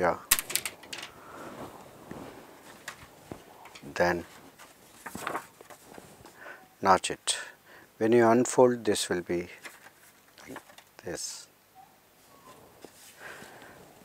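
Stiff paper rustles and flaps as it is handled.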